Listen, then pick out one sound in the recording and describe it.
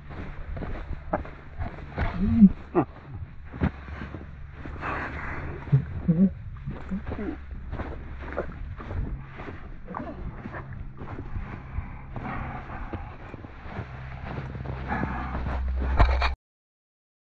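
Footsteps crunch through snow at a running pace.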